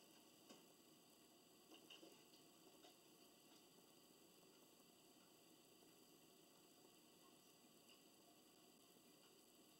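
A television plays music quietly in a room.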